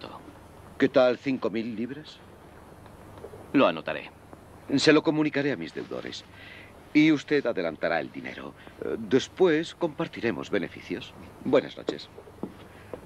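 A man speaks with a sly, drawling tone.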